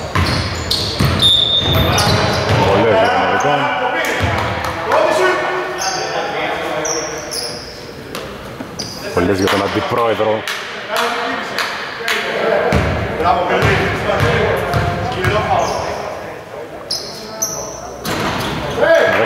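Young men call out to each other, their voices echoing in a large hall.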